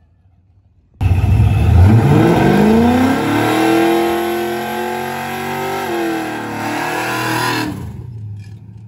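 A car engine revs up and roars.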